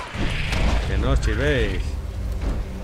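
A monster growls with a deep, rising and falling snarl.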